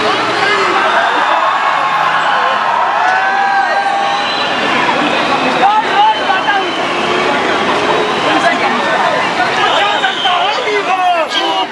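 A large crowd of men and women chants and shouts together outdoors.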